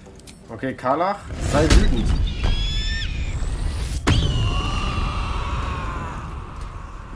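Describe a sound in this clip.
A fire spell bursts with a loud roaring whoosh that slowly fades.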